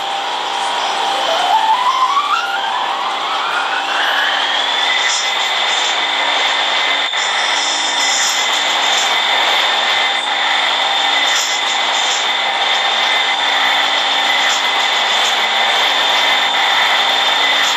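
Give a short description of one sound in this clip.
A train rumbles and rattles along the track at high speed.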